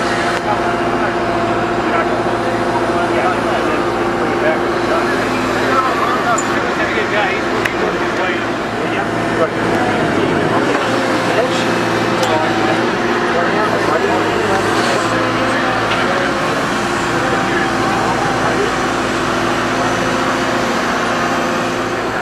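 A machine's engine hums steadily.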